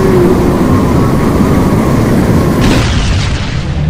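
A powerful energy blast roars and hisses.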